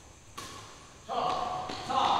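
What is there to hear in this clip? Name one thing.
A badminton racket strikes a shuttlecock in an echoing hall.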